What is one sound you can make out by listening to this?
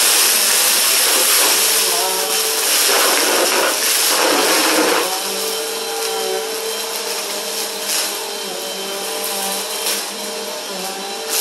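A vacuum cleaner whirs steadily as it is pushed back and forth over carpet.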